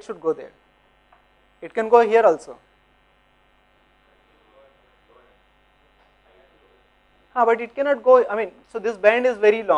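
A man lectures calmly through a microphone, in short bursts with pauses.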